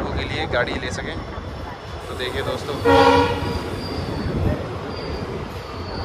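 People chatter nearby on a busy, open platform.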